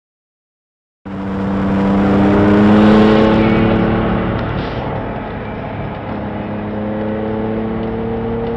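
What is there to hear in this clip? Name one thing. A sports car engine roars loudly from inside the car as it speeds along.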